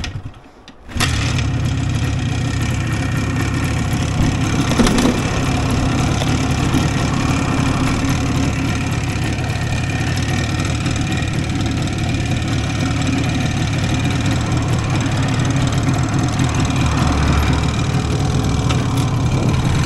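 A motorcycle engine idles with a steady, rumbling putter close by.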